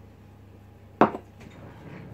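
A mug is set down on a wooden counter with a knock.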